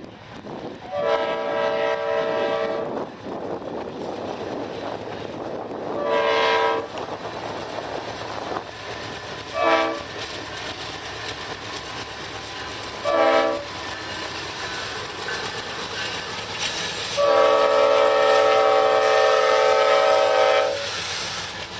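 A train horn blows loudly in long and short blasts.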